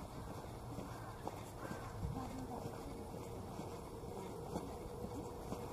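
Footsteps tap on a paved sidewalk outdoors.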